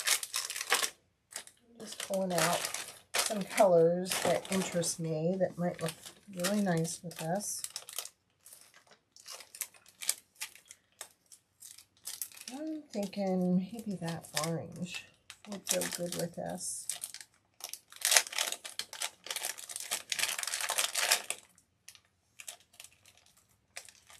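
Small beads and plastic bags rustle and clink as they are handled.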